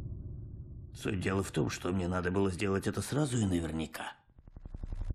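A middle-aged man speaks in a low, threatening voice.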